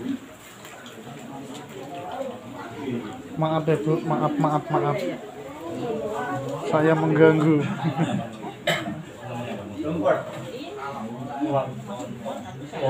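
Several adult men talk together nearby, their voices rising and falling.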